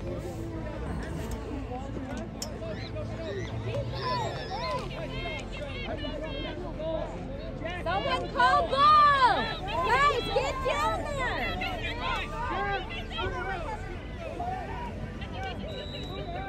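Children and adults shout and cheer excitedly close by, outdoors.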